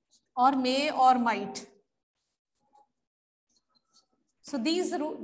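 A woman speaks clearly and calmly, close by.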